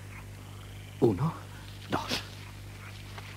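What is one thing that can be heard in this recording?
A man speaks in a low, hushed voice close by.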